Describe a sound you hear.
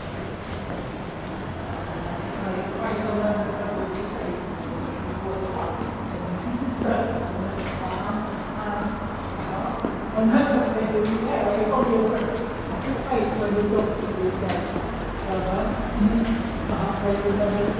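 Footsteps tap on a hard floor in an echoing passage.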